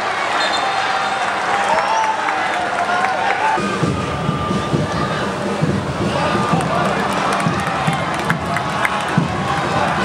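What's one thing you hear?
A crowd murmurs and cheers in an open stadium.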